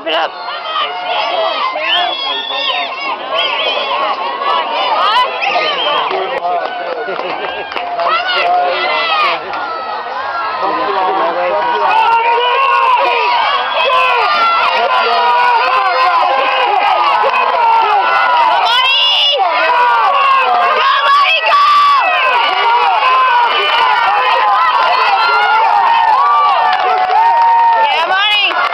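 A crowd of spectators cheers and shouts outdoors, growing louder as it goes on.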